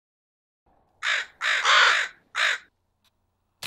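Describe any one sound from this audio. A crow caws loudly a few times.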